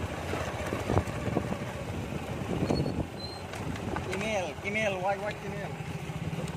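A motorbike engine idles with a low, steady rumble.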